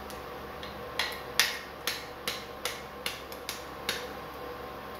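An egg is tapped against the rim of a pan several times to crack it.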